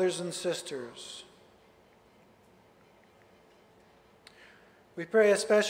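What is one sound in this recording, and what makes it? A man speaks calmly into a microphone, with pauses, in an echoing hall.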